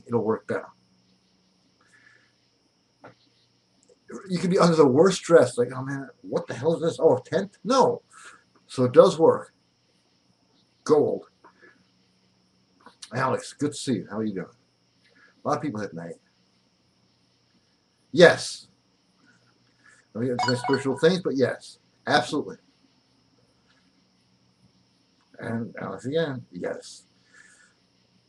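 A middle-aged man speaks with animation into a computer microphone, close by, in short bursts with pauses.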